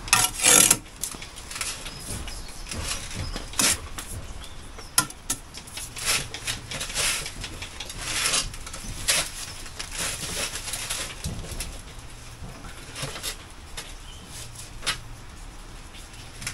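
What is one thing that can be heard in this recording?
Bricks scrape and knock against brickwork.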